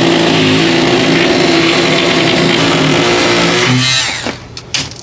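A power cutting tool whirs loudly as it cuts through a wall panel.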